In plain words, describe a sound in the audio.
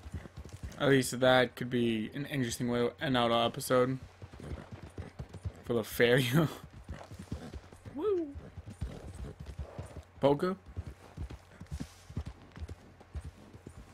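Horse hooves thud in a steady gallop over grass and dirt.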